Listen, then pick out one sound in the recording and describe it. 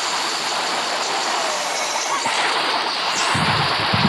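A game chime rings as a star is won.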